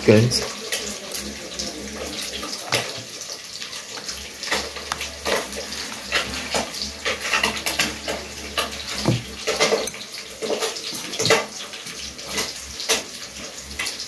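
A fork scrapes and clinks against a bowl while mixing.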